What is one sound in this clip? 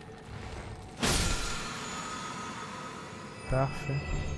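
A magical chime shimmers and slowly fades.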